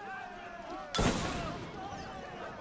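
A bomb bursts with a loud bang.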